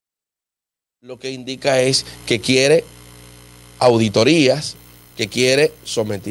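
A man speaks with animation, close into a microphone.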